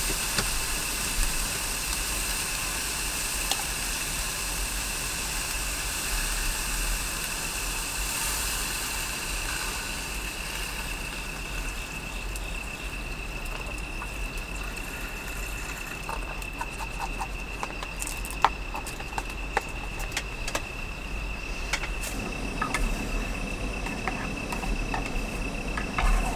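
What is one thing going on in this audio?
A gas canister burner hisses under a pot.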